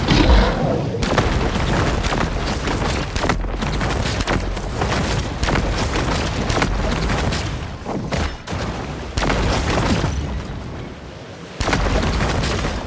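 Water splashes and churns loudly as a large fish thrashes through it.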